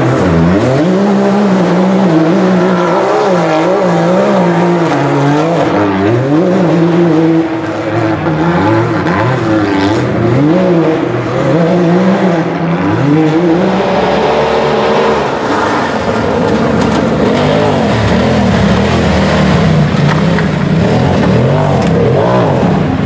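An off-road buggy's engine revs hard, rising and falling in pitch.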